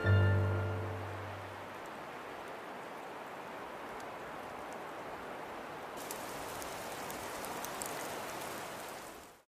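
Steady rain falls outdoors.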